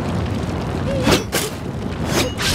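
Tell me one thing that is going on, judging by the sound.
Swords clash with a sharp metallic ring.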